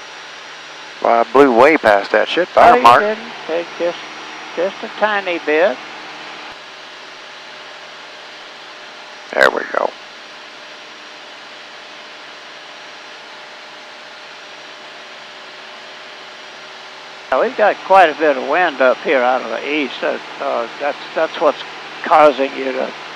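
A man speaks calmly over a crackly headset intercom.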